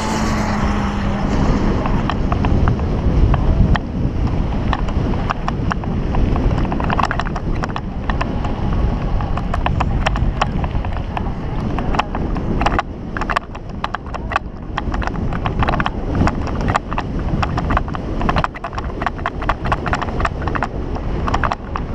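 Bicycle tyres crunch and rattle over a rough dirt track.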